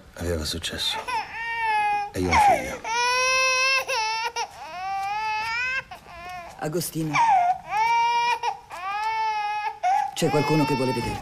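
A young child cries loudly in high wailing bursts.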